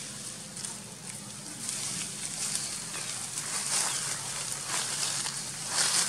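Dry leaves rustle and crackle under a monkey's feet.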